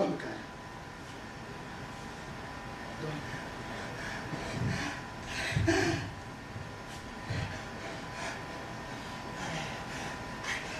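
A man shuffles and rustles on a floor.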